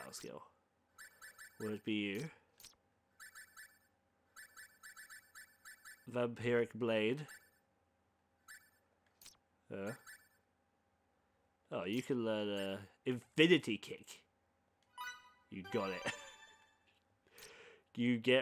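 Short electronic menu blips tick in quick runs.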